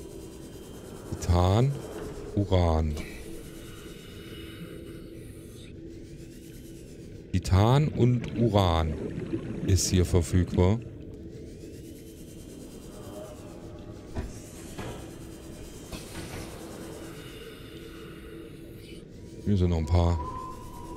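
A small submarine's engine hums steadily underwater.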